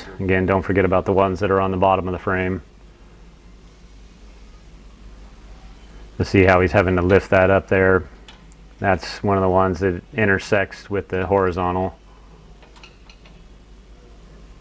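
A socket wrench clicks as a nut is tightened.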